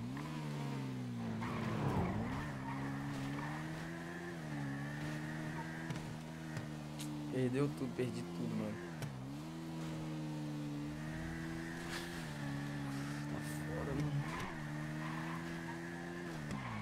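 A motorcycle engine hums and revs steadily, dipping and rising as it shifts gears.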